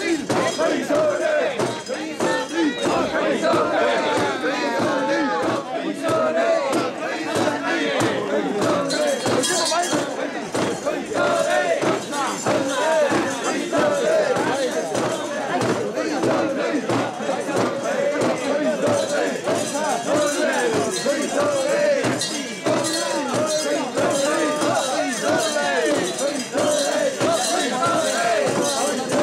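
A crowd of men chant loudly in rhythm close by.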